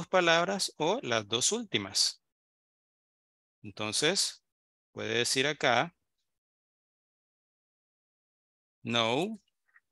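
A man speaks calmly in short phrases over an online call.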